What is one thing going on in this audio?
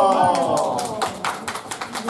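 A woman claps her hands lightly.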